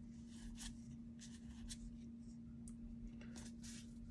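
Trading cards slide and rustle against each other as a hand shuffles them.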